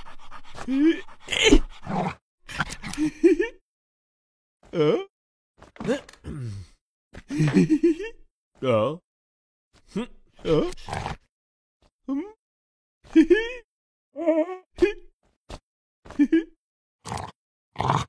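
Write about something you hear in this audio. A dog barks.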